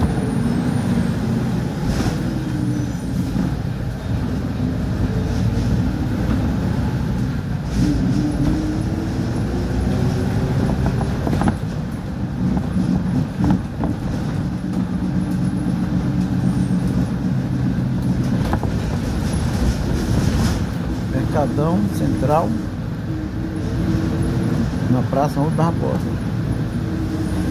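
A vehicle engine rumbles steadily from inside.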